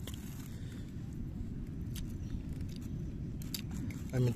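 A hand scrapes through gritty sand.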